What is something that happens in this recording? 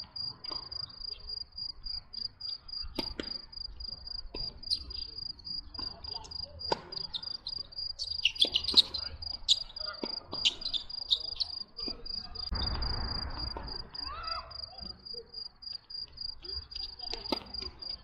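Tennis balls are struck with rackets in sharp, hollow pops.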